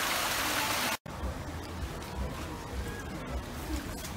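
Water splashes softly as otters swim in a pool.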